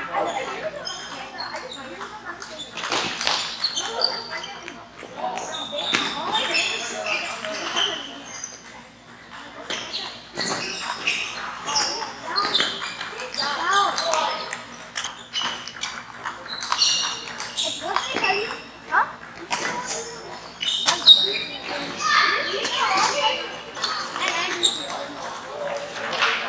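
Table tennis balls click sharply off paddles and tables in quick rallies.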